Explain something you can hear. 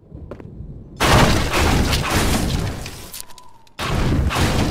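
A wooden crate smashes and splinters.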